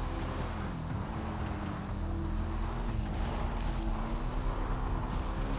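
A motorbike engine hums steadily and shifts in pitch as it rides over rough ground.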